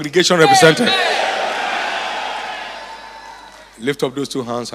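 A crowd shouts and cheers together.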